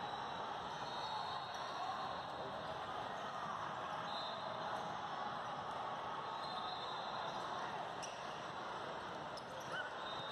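A crowd murmurs and chatters throughout a large echoing hall.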